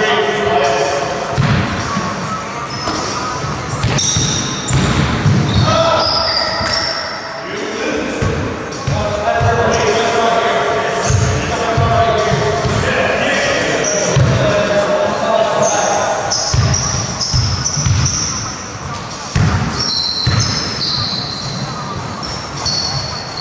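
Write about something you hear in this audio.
Young men call out to each other during a game.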